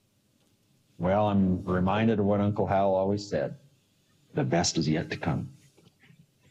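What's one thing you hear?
An elderly man speaks calmly, close to a microphone.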